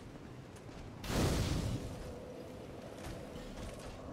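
A fire ignites with a loud whoosh.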